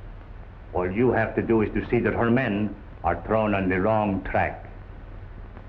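A man speaks with animation, close by, through an old, hissy recording.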